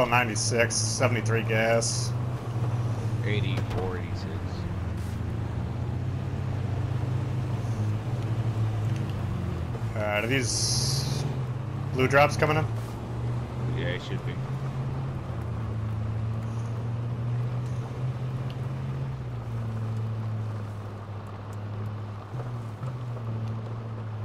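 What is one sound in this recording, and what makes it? A pickup truck engine rumbles steadily as it drives over rough ground.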